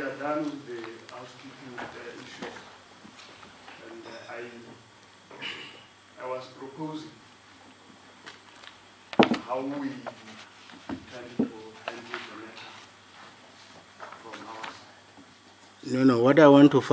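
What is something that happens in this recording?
A man speaks calmly and formally.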